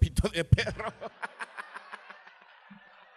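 A small group laughs.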